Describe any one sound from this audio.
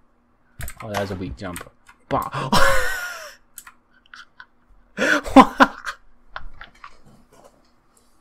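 A young man talks and laughs with animation into a headset microphone.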